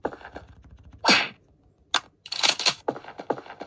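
A game gun fires loud shots.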